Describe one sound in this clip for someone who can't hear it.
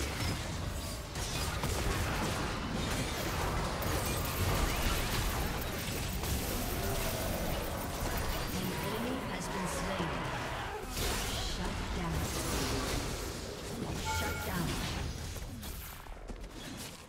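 Game combat effects clash and crackle.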